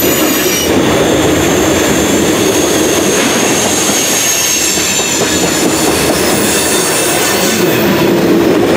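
A freight train rumbles past close by, its wheels clacking and squealing on the rails.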